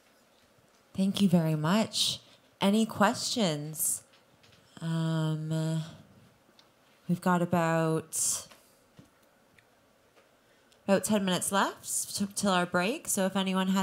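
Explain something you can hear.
A woman speaks into a microphone through loudspeakers, in short phrases with pauses.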